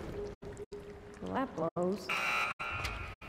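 A young woman remarks wryly, close by.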